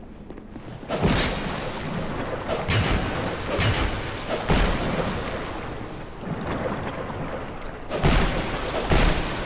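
A sword strikes with sharp, heavy blows.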